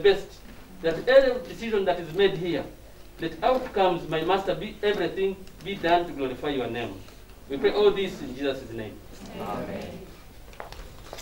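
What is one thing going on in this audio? A middle-aged man speaks calmly through a microphone in a room with a slight echo.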